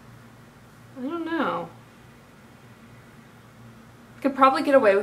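A young woman speaks close by, with a lively voice.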